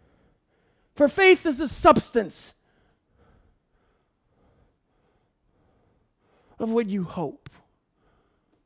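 A middle-aged man speaks with animation through a headset microphone, in short bursts.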